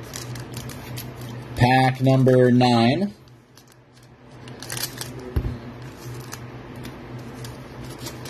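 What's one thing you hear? A foil wrapper crinkles as it is handled.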